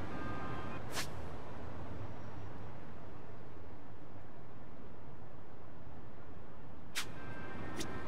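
A short electronic click sounds.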